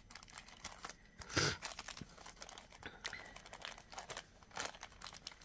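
A plastic bag crinkles and rustles between hands.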